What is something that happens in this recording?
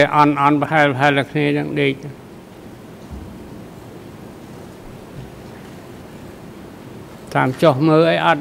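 An elderly man speaks calmly into a microphone, pausing between phrases.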